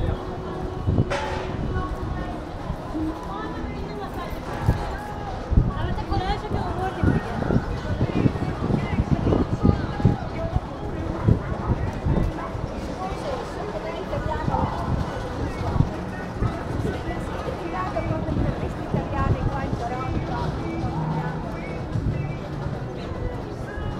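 Footsteps tap on brick paving outdoors.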